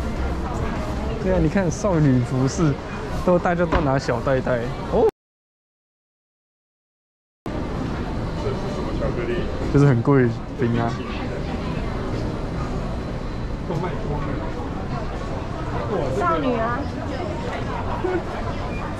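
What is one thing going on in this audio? A woman talks close by in a lively way.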